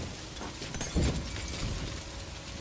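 An explosion booms with a loud blast.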